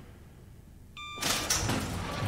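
An electronic beep sounds from a panel.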